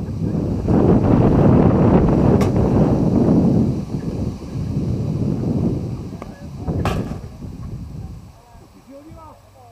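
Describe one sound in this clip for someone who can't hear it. Wind rumbles and buffets across an open field.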